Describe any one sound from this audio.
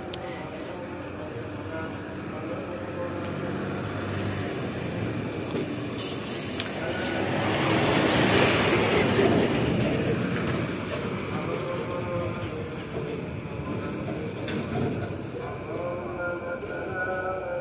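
A heavy truck's engine rumbles as it approaches, roars past close by, and fades into the distance.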